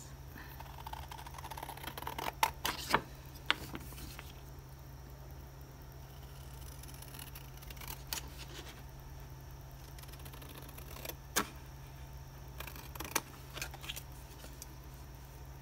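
Stiff paper rustles and crinkles in the hands.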